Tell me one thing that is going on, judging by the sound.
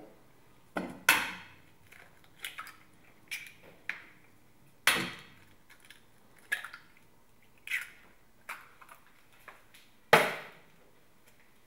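An egg cracks against the rim of a metal bowl.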